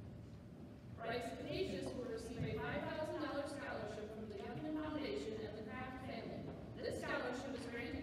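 A woman reads out names through a loudspeaker in a large echoing hall.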